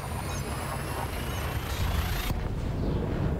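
A rushing jump whoosh roars, then cuts off abruptly.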